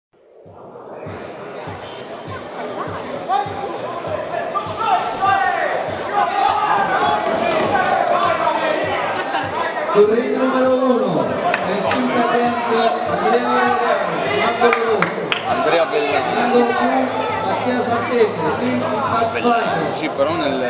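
A crowd talks and shouts in a large echoing hall.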